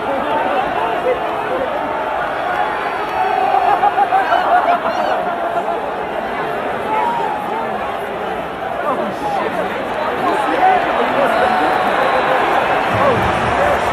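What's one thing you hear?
A large stadium crowd roars and cheers.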